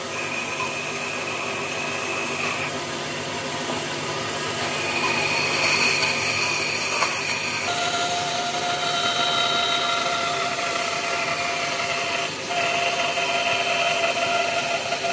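A band saw whines steadily as it cuts through wood.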